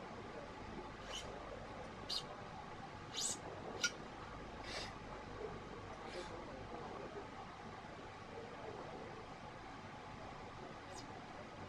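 Racket strings rub and click softly as they are pulled through a frame.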